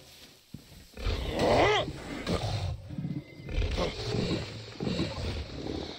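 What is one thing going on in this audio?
A crocodile growls deeply.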